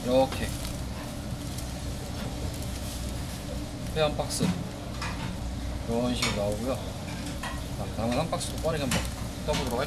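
Plastic wrap crinkles as a tray is handled.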